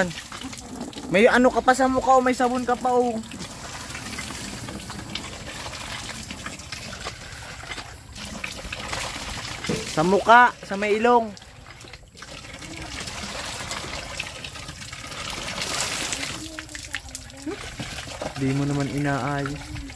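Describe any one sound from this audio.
Water from a hand pump splashes into a basin.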